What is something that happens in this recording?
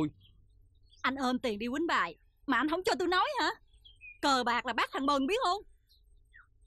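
A woman speaks firmly, close by.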